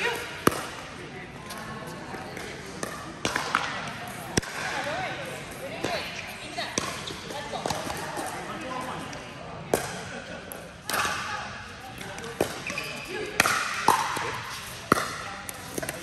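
Sneakers squeak and shuffle on a hard court floor.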